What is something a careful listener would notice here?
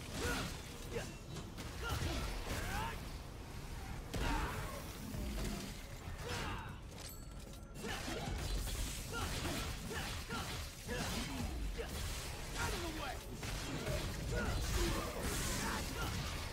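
Sword slashes and hits crash in video game combat.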